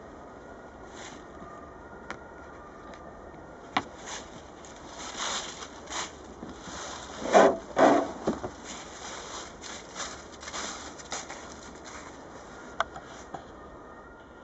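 Stiff boards scrape and tap as they are handled.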